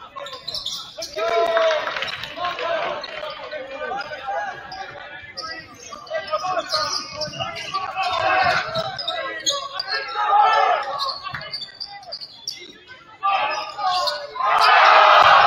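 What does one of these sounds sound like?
A crowd in a large echoing gym cheers and shouts loudly.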